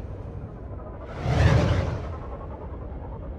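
A spaceship roars past with a rushing whoosh.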